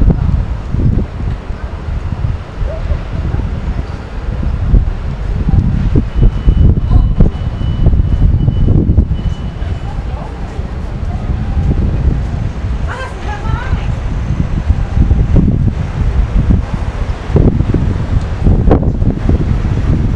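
Traffic rumbles steadily along a street below.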